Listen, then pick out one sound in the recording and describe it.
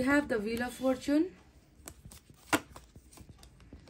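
A card is laid down with a soft tap on a table.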